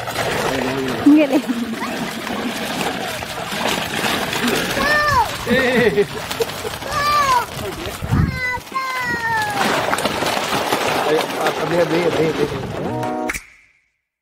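Men talk and call out nearby with animation.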